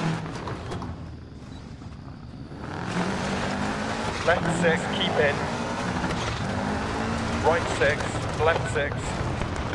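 Tyres crunch over loose gravel.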